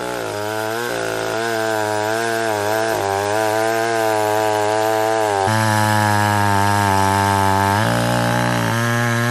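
A chainsaw engine roars loudly close by, its pitch rising and dipping as it cuts into wood.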